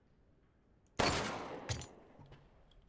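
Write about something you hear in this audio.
A single gunshot bangs and echoes.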